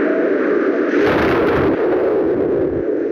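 A parachute flaps open with a loud whoosh.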